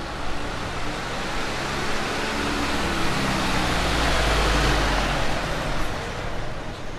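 A truck engine rumbles nearby as it slowly drives past.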